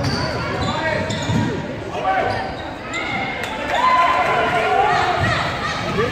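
Spectators call out and chatter in an echoing gym.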